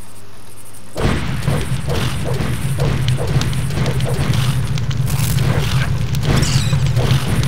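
Flames roar and crackle close by.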